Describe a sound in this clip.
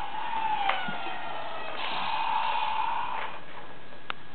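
A toy robot plays warbling electronic sounds.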